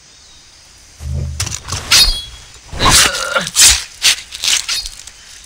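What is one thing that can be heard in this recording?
A knife cuts wetly into an animal's flesh.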